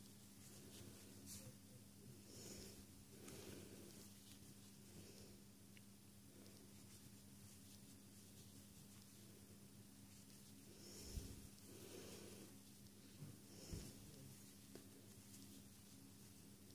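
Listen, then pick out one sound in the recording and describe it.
Yarn rustles softly as it is pulled and worked.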